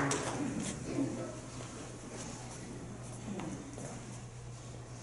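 A man speaks into a microphone over loudspeakers in an echoing hall.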